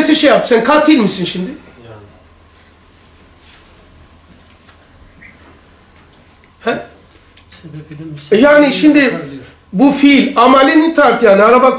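An elderly man speaks calmly and with growing animation, close by.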